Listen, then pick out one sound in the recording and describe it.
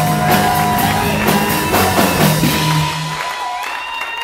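A band plays rock music.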